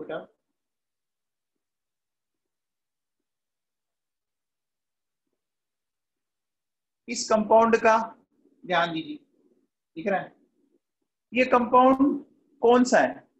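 A man speaks calmly, close to a microphone, explaining with pauses.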